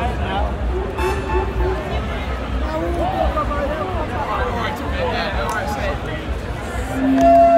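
A singer sings through a microphone over the band.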